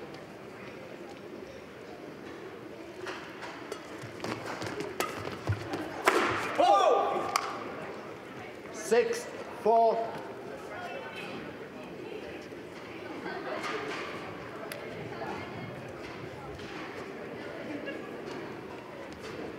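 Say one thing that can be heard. A shuttlecock is struck sharply by rackets in a large echoing hall.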